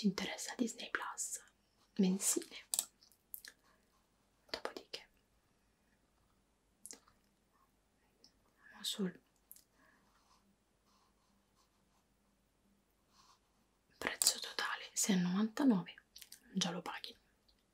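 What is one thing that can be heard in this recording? A young woman speaks calmly and clearly into a close microphone, with pauses.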